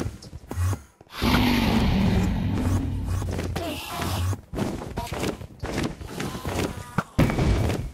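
A bow is drawn and an arrow is loosed with a twang.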